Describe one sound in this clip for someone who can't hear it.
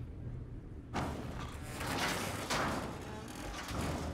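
Heavy metal doors grind and scrape as they are forced apart.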